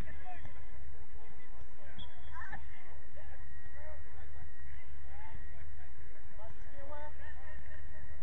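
Distant young players shout to each other across an open outdoor field.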